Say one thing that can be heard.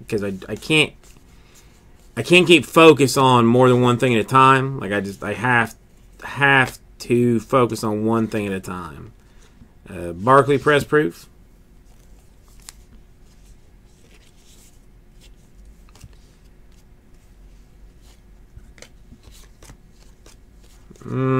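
Stiff paper cards slide and flick softly against each other.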